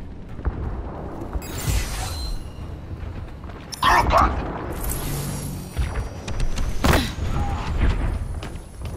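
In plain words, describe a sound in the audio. Footsteps thud softly as a game character runs through corridors.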